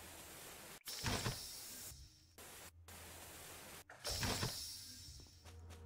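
A spray hisses in short, loud bursts.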